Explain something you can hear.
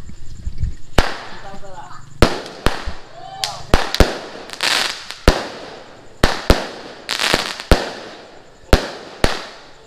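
Fireworks bang and crackle loudly overhead.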